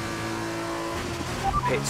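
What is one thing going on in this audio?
A racing car engine revs up sharply.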